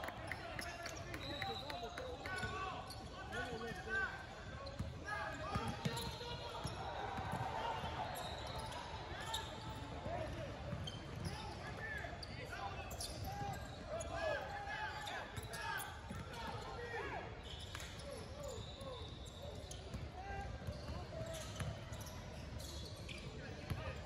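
A crowd of young people shouts and calls out with animation.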